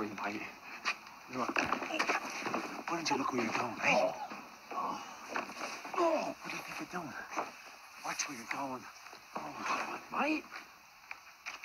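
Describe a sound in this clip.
A second man answers quietly and firmly, close by.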